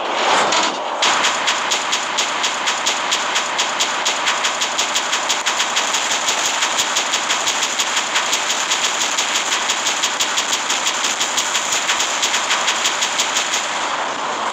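Rapid gunfire rattles in a fast, steady stream.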